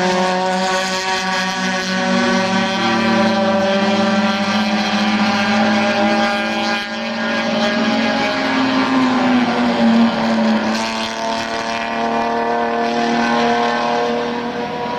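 Racing car engines roar loudly nearby, their pitch rising and falling as they shift gears.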